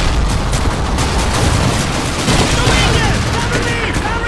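A submachine gun fires in bursts.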